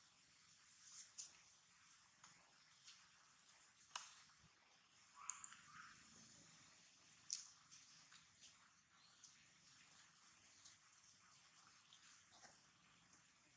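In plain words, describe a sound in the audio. Dry leaves rustle and crackle as a monkey shifts about on them.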